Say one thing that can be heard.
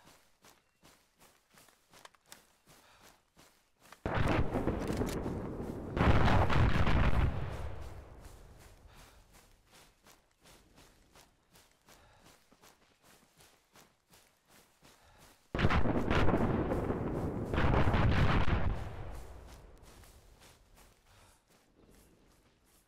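Footsteps crunch steadily through dry grass and brush.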